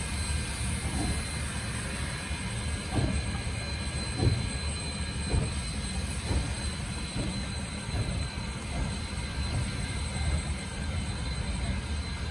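A steam locomotive chuffs slowly and heavily as it pulls away.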